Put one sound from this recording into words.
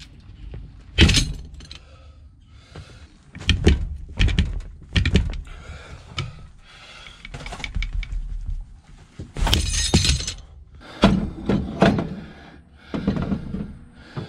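Heavy metal parts clank and knock against each other.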